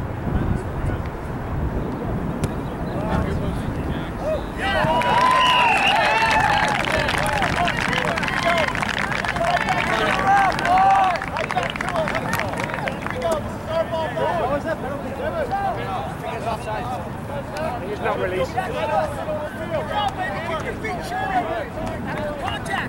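Young women shout calls to each other outdoors.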